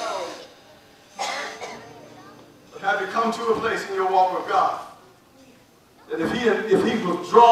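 A man preaches with animation through a microphone and loudspeakers in an echoing hall.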